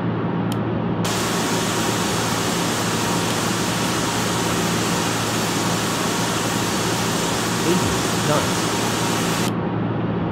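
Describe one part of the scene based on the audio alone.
Wind rushes loudly past an airliner.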